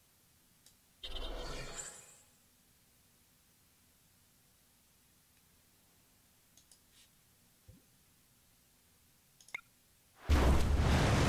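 Short game sound effects chime as cards are played.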